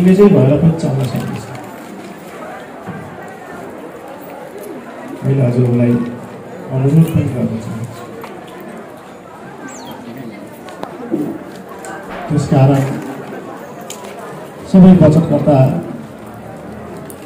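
A man speaks loudly close by, in bursts.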